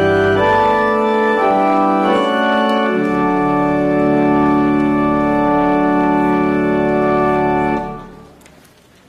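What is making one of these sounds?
An organ plays sustained chords in a large echoing hall.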